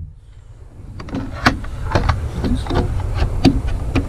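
Plastic parts knock and click as a cover is snapped into place.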